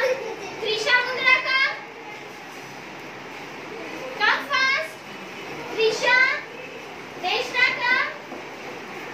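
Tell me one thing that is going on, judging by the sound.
Young children call out together in high voices, in short bursts.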